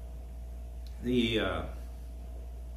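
An elderly man speaks a few words aloud, close by.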